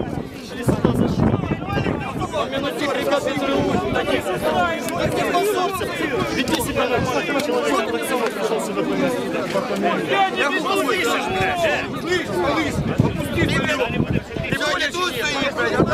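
A crowd of men shout and argue loudly close by, outdoors.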